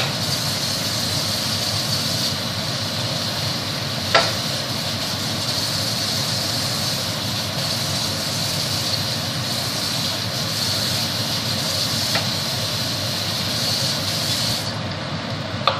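Water runs steadily from a tap.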